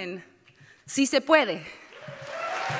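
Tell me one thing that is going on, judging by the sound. A woman speaks with emotion into a microphone in a large hall.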